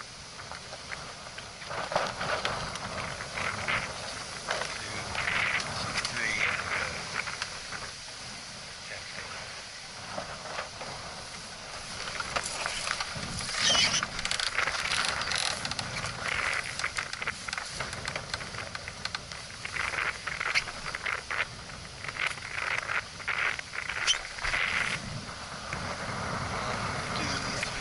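Wind blows and buffets outdoors.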